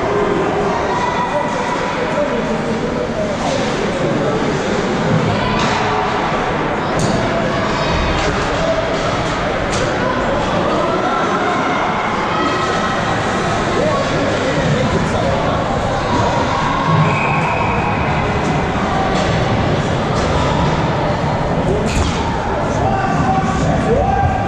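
A crowd murmurs and calls out throughout.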